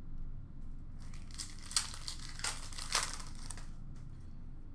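Foil card packs crinkle and rustle in someone's hands.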